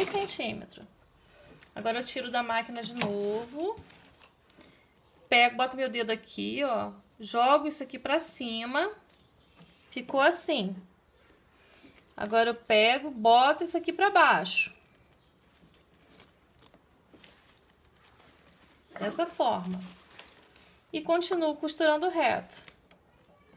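A woman speaks calmly, close by, in short phrases.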